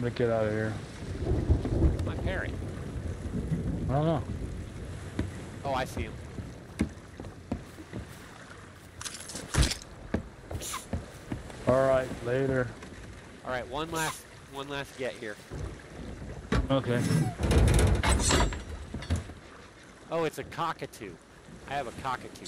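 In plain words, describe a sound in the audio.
Waves lap against a wooden ship's hull.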